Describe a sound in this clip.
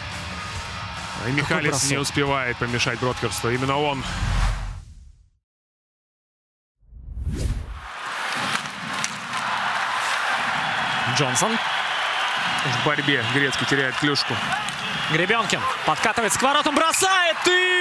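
Hockey sticks clack against a puck on ice.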